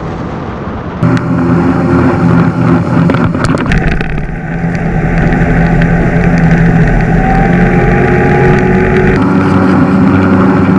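An outboard motor drones steadily at speed.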